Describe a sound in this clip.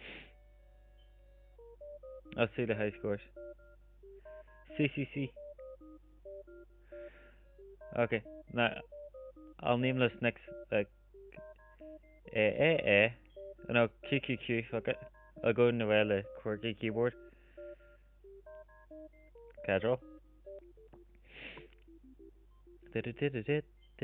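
Simple electronic game music plays a plinking tune.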